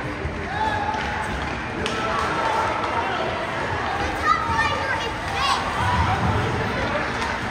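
A crowd of spectators shouts and cheers in an echoing rink.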